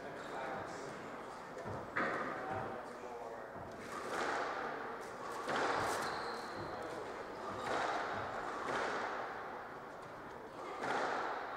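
A squash ball is struck hard and smacks off the walls, echoing around the court.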